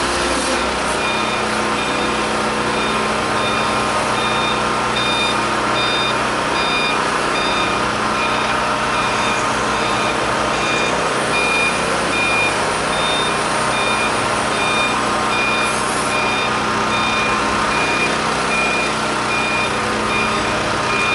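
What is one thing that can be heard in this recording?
A forklift's warning alarm beeps repeatedly at an even pace.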